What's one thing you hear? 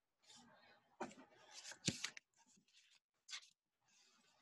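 Paper rustles as it is handled and turned.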